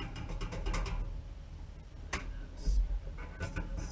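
A metal grate clanks against a metal bucket.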